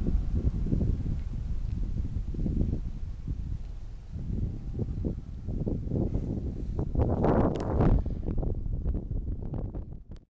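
Wind buffets the microphone outdoors in strong gusts.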